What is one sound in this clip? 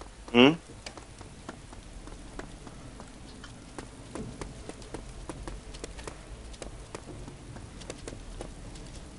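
Footsteps thud quickly on hard ground as a man runs.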